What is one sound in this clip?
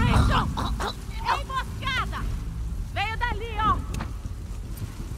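A man shouts in pain nearby.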